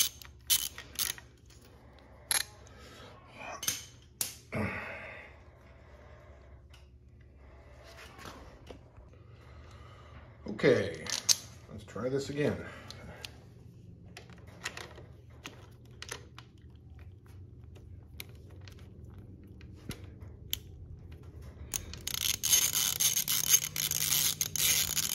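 Metal tools clink and tap against an engine.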